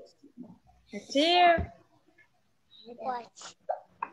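A little girl speaks close to a phone.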